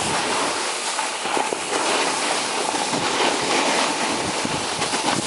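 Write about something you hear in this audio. Wind rushes loudly past, as if over a microphone outdoors.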